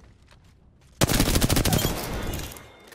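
A rifle fires a rapid, loud burst of shots.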